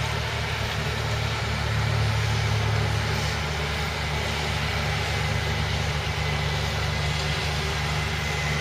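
A diesel tractor engine drones under load.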